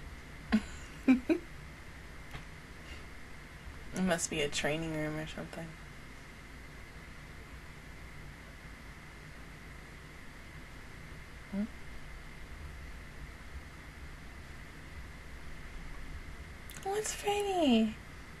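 A young woman laughs softly close to a microphone.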